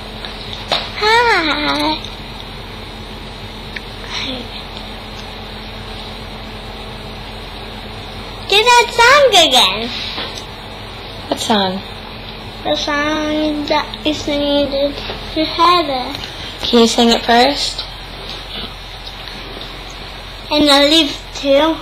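A young girl talks and sings playfully close to a microphone.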